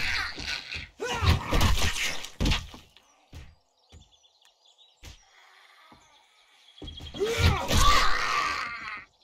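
A club strikes a body with heavy thuds.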